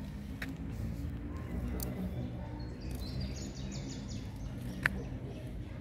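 Giant tortoises munch on lettuce leaves.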